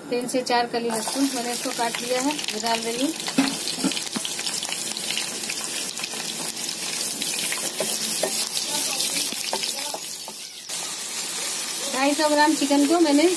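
Chopped garlic sizzles and crackles in hot oil.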